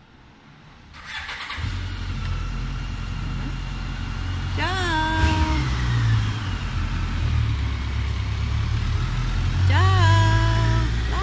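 A motorcycle engine starts and rumbles loudly nearby.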